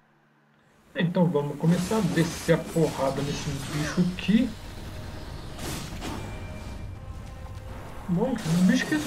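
Heavy sword blows slash and thud in quick bursts.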